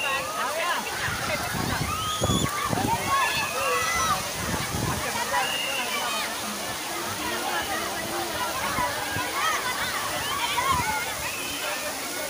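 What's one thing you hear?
Children shout and squeal with excitement nearby.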